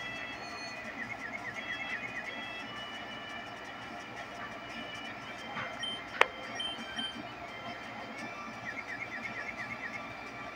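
A warbling electronic sound effect pulses briefly.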